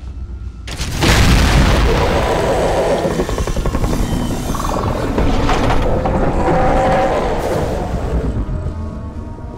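A huge creature roars loudly and rumbles nearby.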